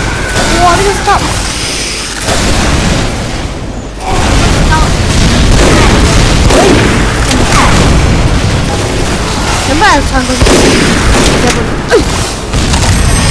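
Rifle shots crack and boom.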